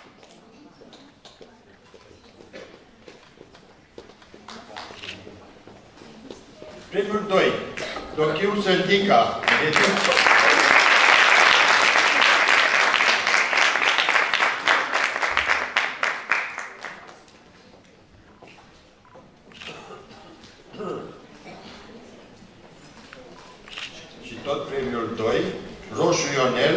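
A man speaks into a microphone through loudspeakers in a large hall.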